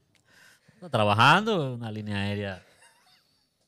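A man chuckles into a close microphone.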